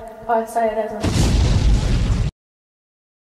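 A loud blast rumbles and roars.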